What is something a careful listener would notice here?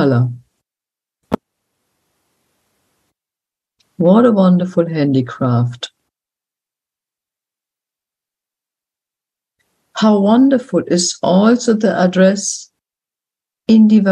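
An elderly woman speaks calmly, in bursts with pauses, heard through an online call.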